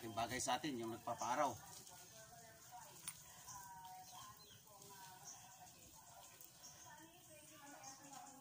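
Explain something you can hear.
Water sprays from a garden hose and splashes against a wall.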